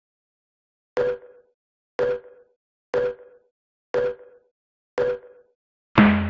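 A game countdown beeps once a second.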